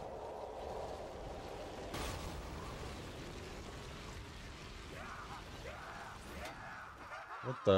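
Magic crackles and whooshes.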